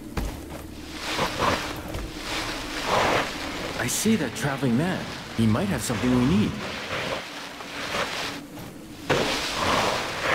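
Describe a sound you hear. Loose sand rushes and hisses under a sliding figure.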